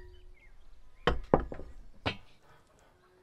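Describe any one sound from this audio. A wooden spoon scrapes and clinks against a glass bowl.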